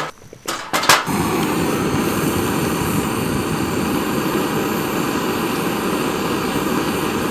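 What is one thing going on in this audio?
A gas torch roars steadily close by.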